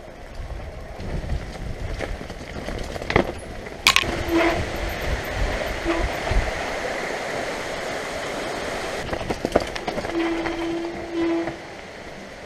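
A mountain bike rattles and clatters over roots and stones.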